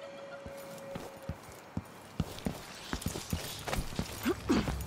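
Footsteps tap quickly on a hard stone floor.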